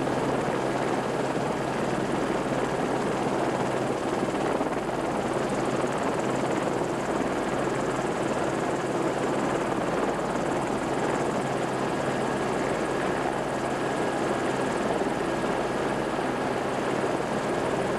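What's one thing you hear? A steam locomotive chuffs heavily as it climbs toward the listener.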